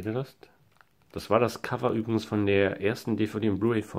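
A plastic sleeve crinkles as it is handled.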